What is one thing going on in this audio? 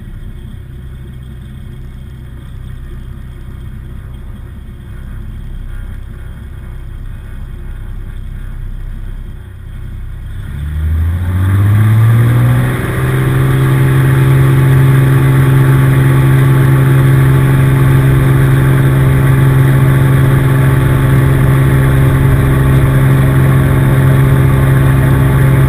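A small propeller plane's engine hums low, then quickly revs up to a loud, steady roar.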